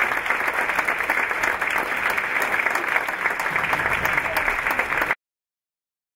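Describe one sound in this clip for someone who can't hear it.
A large audience claps and cheers loudly.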